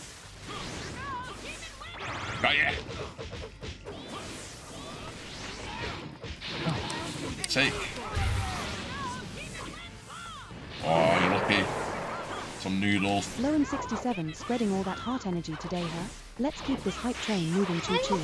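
Hits and blasts crash during a game fight.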